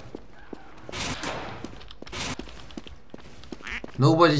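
A gun fires repeatedly.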